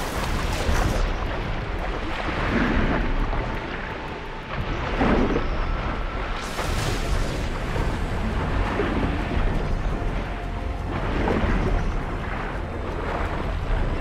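Water rumbles and bubbles dully under the surface.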